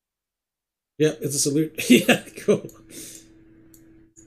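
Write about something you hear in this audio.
A young man laughs loudly, close to a microphone.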